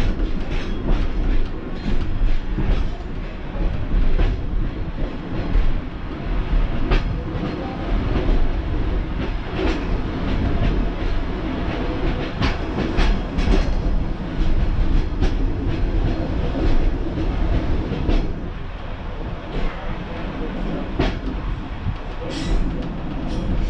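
A Pacer diesel railbus engine drones, heard from the cab.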